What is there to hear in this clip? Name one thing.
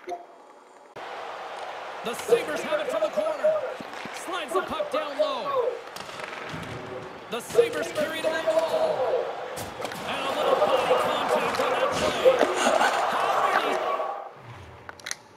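A crowd roars and cheers in a large arena.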